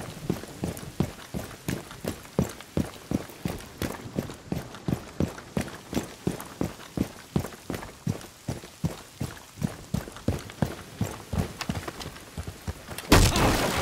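Quick footsteps thud steadily on hard ground.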